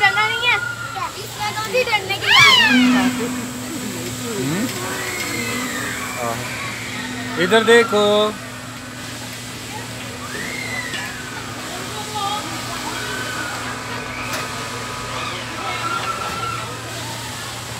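A fairground ride's machinery hums steadily.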